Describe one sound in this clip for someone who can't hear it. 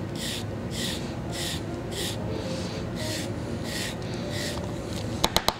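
A plastic scraper scrapes rhythmically across a clay block.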